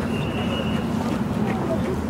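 Footsteps of a jogger patter on pavement nearby.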